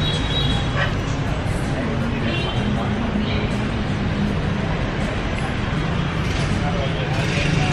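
A young woman chews crunchy food close by.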